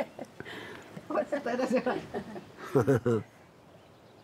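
An elderly woman laughs and talks cheerfully.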